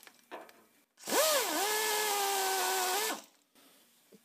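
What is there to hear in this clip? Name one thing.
A pneumatic drill whines at high speed, spinning up and winding down.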